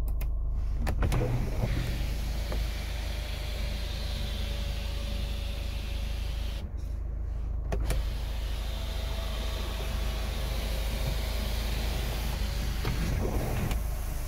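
An electric panoramic sunroof motor whirs as the glass panel slides open.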